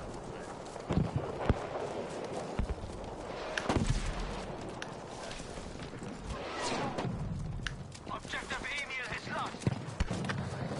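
Gunshots crack and echo across open ground.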